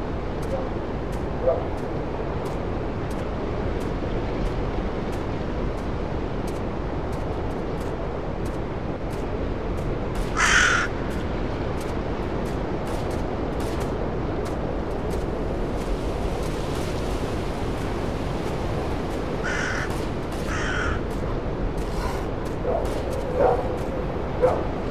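Wind rushes steadily through tall trees outdoors.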